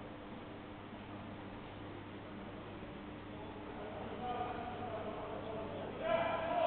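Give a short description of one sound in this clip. People chatter and call out in a large echoing hall.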